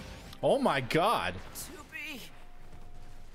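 A man exclaims loudly and with animation into a close microphone.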